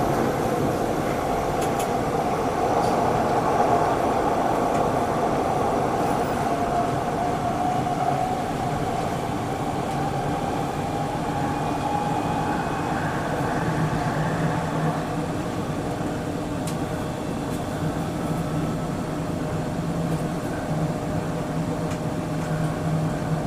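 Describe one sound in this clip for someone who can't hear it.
A train rumbles and hums steadily along the tracks, first through an echoing tunnel and then out in the open.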